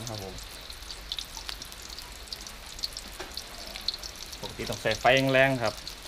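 Liquid simmers and crackles softly in a wok.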